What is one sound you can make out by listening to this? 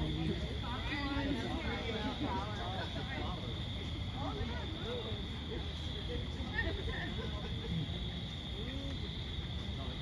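Several people chat and murmur nearby outdoors.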